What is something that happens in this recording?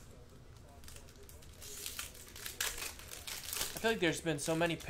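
Foil wrappers crinkle and tear as a pack is opened.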